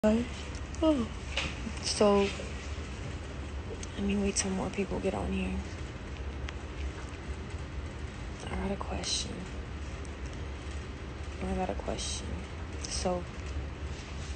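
A young woman speaks casually and close to a phone microphone, in short bursts.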